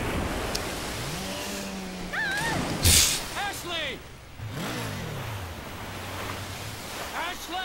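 A personal watercraft engine revs as it skims across the water.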